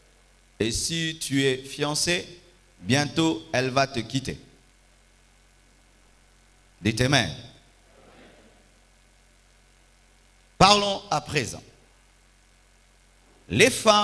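A man preaches with animation into a microphone, heard through loudspeakers in a large echoing hall.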